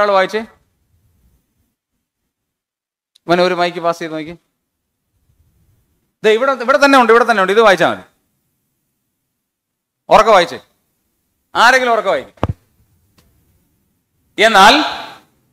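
A man speaks into a microphone in short phrases, pausing between them, as if lecturing.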